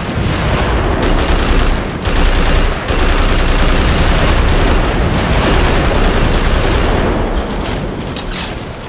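An automatic rifle fires rapid bursts of gunshots.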